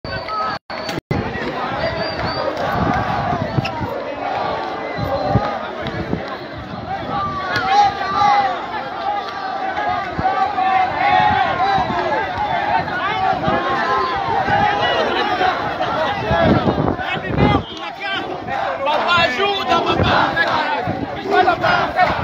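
A crowd of young men shouts and chants outdoors.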